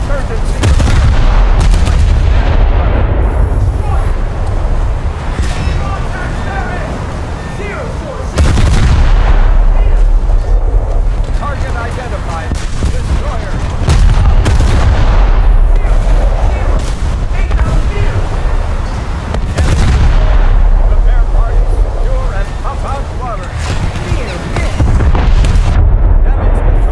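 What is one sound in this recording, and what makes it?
Heavy naval guns fire in loud booming salvos.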